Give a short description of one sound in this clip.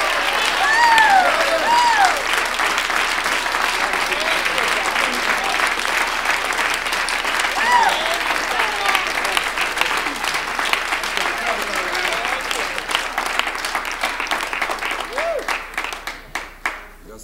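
A crowd cheers and shouts excitedly.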